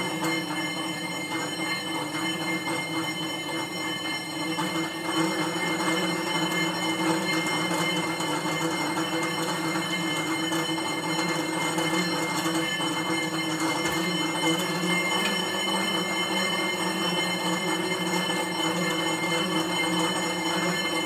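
An exercise bike's flywheel whirs steadily.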